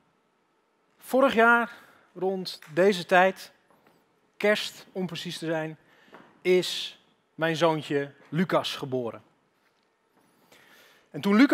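A young man speaks calmly into a headset microphone, heard over a loudspeaker.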